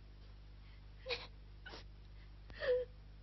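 A girl sobs quietly.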